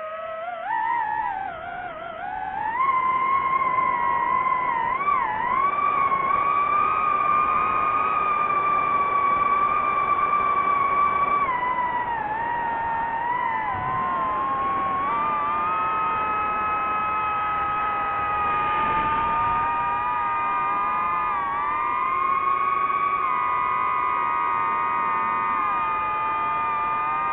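Drone propellers whine steadily, their pitch rising and falling as the drone flies.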